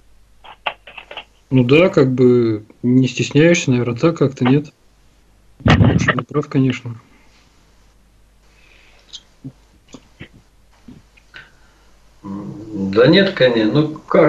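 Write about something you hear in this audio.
A man speaks steadily through a microphone, with pauses.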